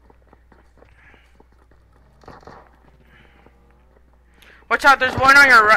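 Footsteps walk quickly over hard ground.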